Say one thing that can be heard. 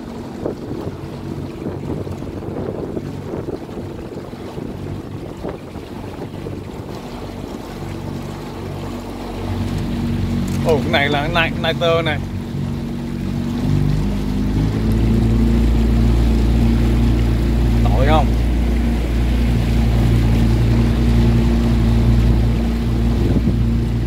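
A boat engine hums steadily, growing louder partway through.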